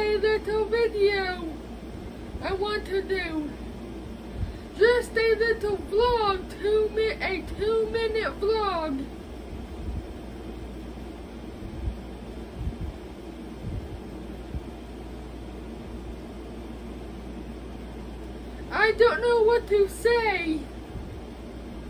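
A teenage boy sings loudly and close by.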